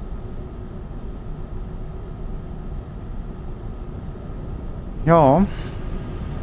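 A heavy truck engine drones while cruising.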